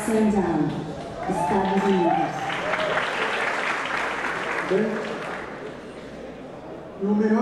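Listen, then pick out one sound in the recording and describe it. A man speaks with animation through a loudspeaker in a large hall.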